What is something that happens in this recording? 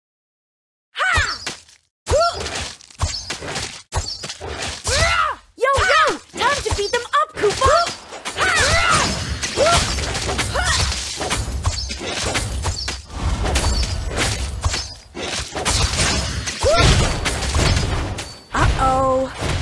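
Video game battle effects whoosh, clash and crackle in quick bursts.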